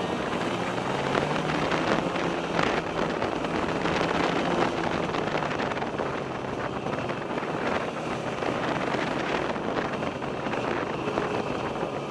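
A snowmobile engine drones steadily close by.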